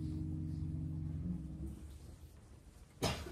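A double bass plays low notes.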